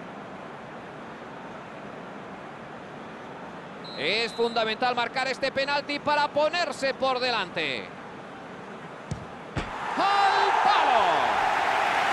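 A large crowd murmurs and chants in a stadium.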